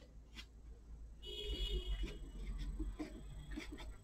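A brush swishes and dabs on paper.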